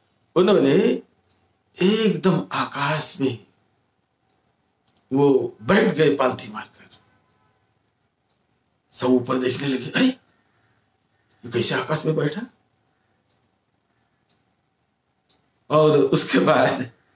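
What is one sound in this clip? An elderly man speaks calmly close to the microphone, pausing between phrases.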